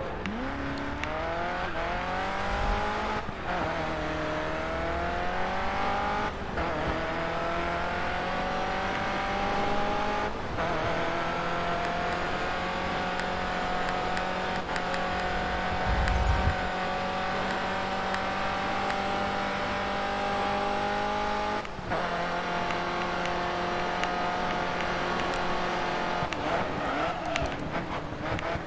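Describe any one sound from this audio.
A racing car engine roars and climbs in pitch as it speeds up.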